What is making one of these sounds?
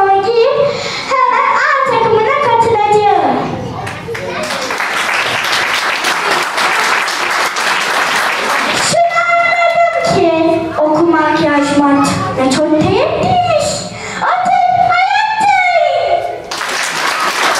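A young girl sings into a microphone over a loudspeaker.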